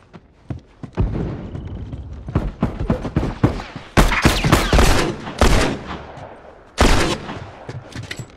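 Gunshots ring out loudly in quick bursts.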